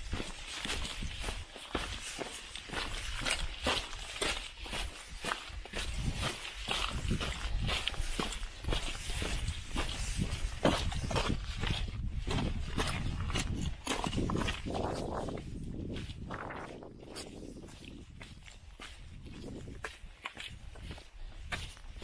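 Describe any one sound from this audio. Wind blows across the microphone outdoors.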